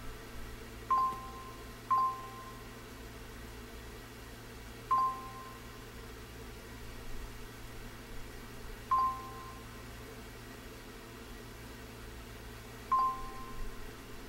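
A video game beeps as letters are selected.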